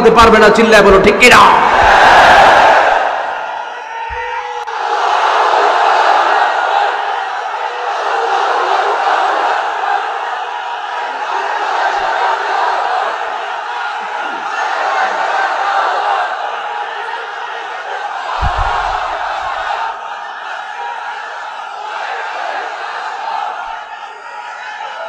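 A man speaks with feeling into a microphone, heard through loudspeakers in a large echoing space.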